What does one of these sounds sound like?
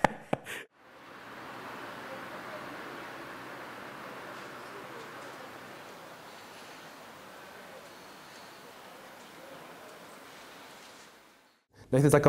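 Quiet street noise hums outdoors.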